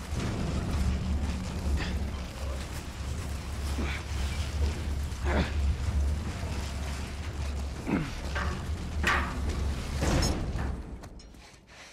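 A heavy metal bin rumbles as it rolls over rough ground.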